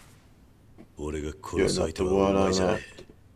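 A man speaks in a low, calm, threatening voice.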